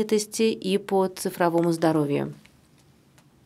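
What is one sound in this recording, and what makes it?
A woman speaks calmly into a microphone over a loudspeaker system.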